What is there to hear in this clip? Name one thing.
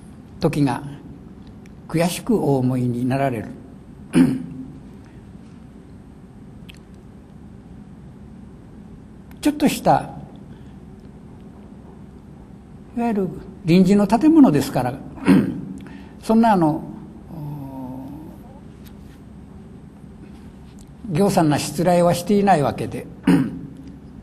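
An elderly man reads aloud slowly and calmly into a microphone, with long pauses.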